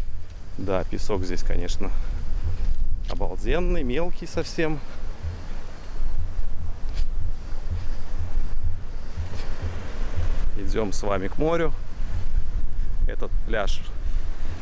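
Wind blows across the open beach.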